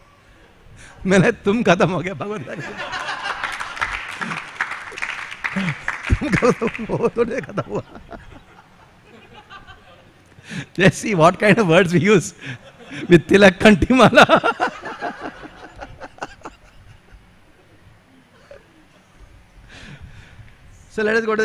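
An elderly man speaks and laughs warmly into a microphone.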